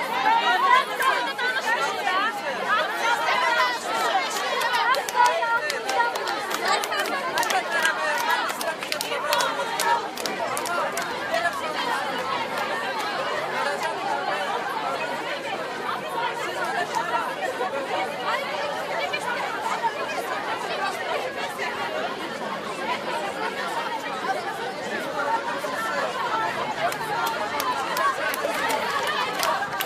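A large crowd of young women and men chants and shouts outdoors.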